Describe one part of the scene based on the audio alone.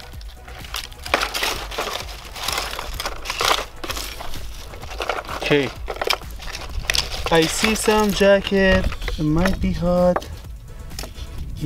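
Small broken fragments rustle and clink as a hand sifts through them.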